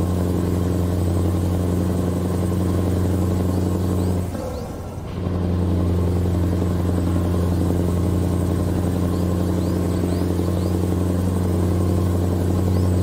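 A truck engine drones steadily at a low pitch, briefly dropping away once.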